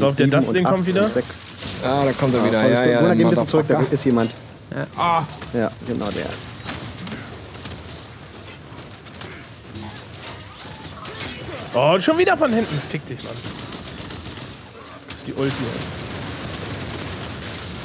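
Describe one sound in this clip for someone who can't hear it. Gunfire and explosions from a video game crackle and boom.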